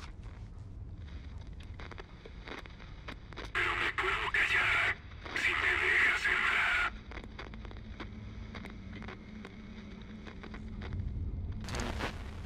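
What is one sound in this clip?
A handheld radio crackles and hisses with static.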